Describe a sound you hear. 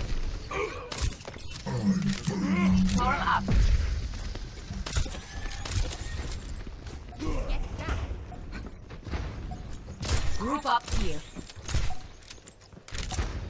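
A rifle fires sharp shots again and again.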